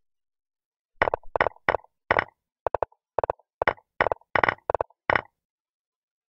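Checker pieces click sharply onto a board, one after another.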